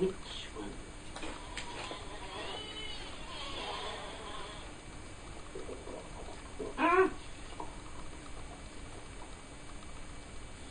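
A young woman chews food with soft crunching.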